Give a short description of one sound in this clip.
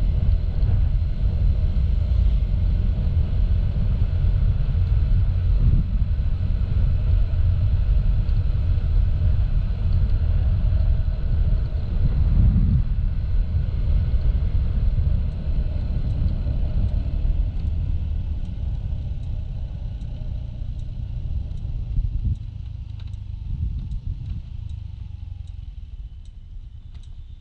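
Wind rumbles past outdoors, fading as the ride slows.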